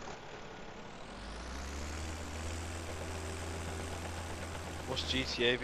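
An excavator engine starts up and idles with a low drone.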